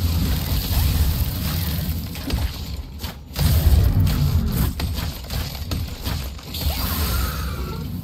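Magic blasts burst with a crackling roar.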